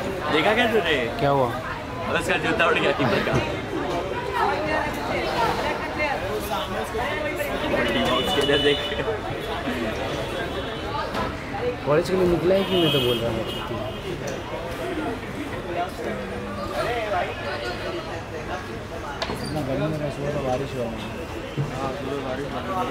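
Men talk and call out close by.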